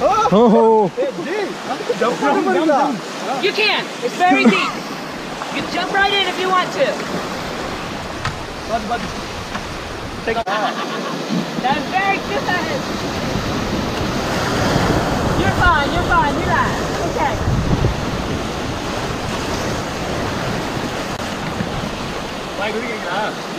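Rapids roar and splash around a raft.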